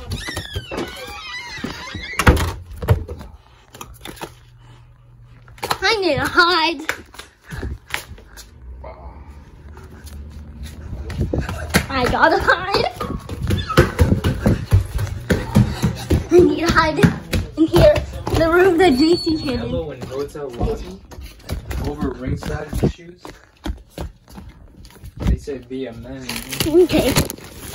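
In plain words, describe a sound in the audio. A phone rustles and knocks as it is handled.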